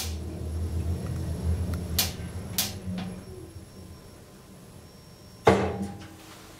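An elevator hums low as it moves.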